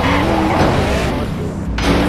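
A car crashes with a metallic scrape.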